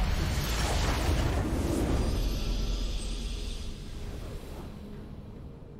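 A game's victory fanfare bursts out loudly and fades.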